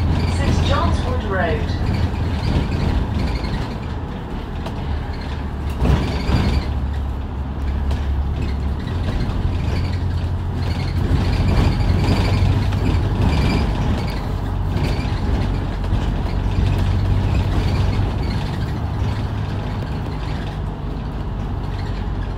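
A diesel bus engine hums from inside as the bus drives along.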